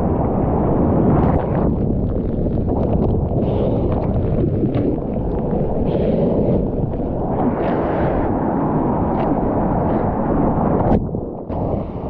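Ocean spray splashes over a surfboard.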